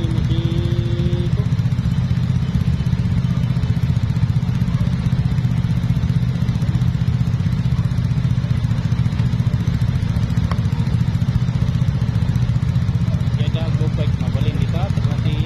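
A motorcycle engine idles close by with a steady low rumble.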